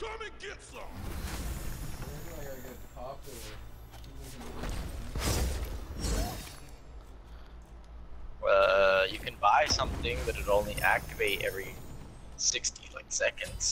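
Magic blasts whoosh and crackle during a video game battle.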